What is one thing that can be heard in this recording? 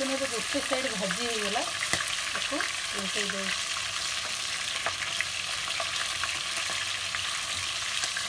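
A spoon stirs and scrapes food in a pot.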